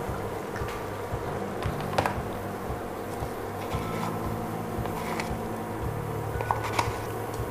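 Broth simmers and bubbles softly in a pot.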